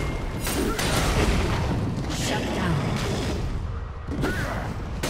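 Game spell effects whoosh and crackle in bursts.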